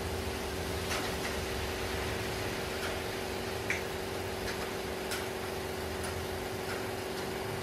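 Coffee trickles into a glass.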